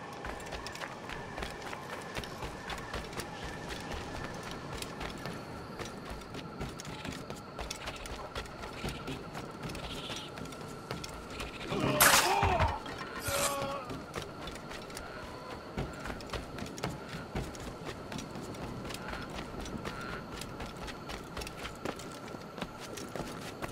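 Quick footsteps run over dirt and grass.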